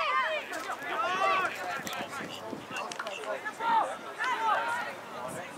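Young players shout to each other outdoors on an open field.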